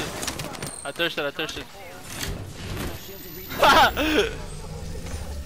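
A battery charges with a rising electronic whir.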